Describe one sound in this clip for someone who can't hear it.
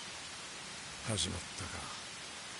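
A man speaks briefly in a low, calm voice.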